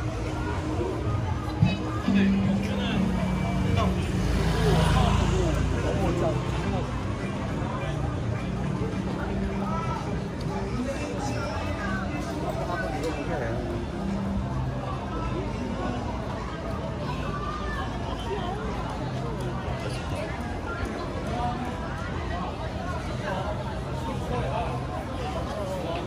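Footsteps shuffle on paving stones nearby.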